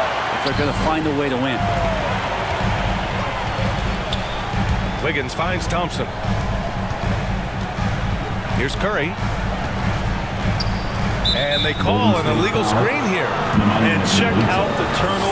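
A large crowd murmurs and cheers steadily in a big echoing arena.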